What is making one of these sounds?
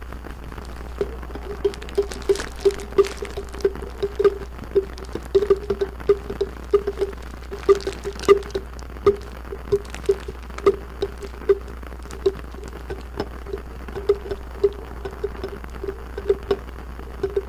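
A glass jar clinks and knocks again and again against small hard beads.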